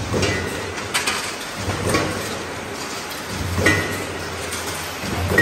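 Factory machinery hums steadily in a large echoing hall.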